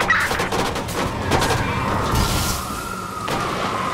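A bus crashes into a car with loud bangs and crunching metal.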